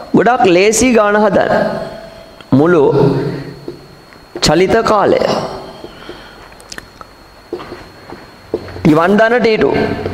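A man speaks calmly through a clip-on microphone, in short phrases with pauses.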